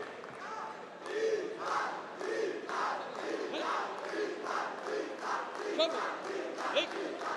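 A crowd claps in rhythm in a large echoing hall.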